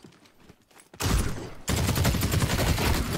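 A gun fires in a rapid, loud burst.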